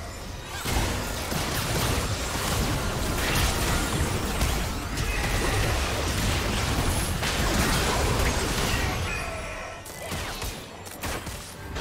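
Spell blasts, impacts and explosions of a video game battle clash rapidly and loudly.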